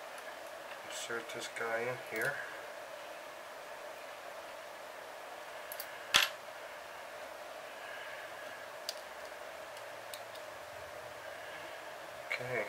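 Small metal parts click and clink together as they are handled.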